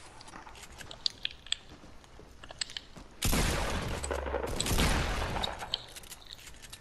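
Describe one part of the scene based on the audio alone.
Gunfire cracks in short bursts, with a loud blast.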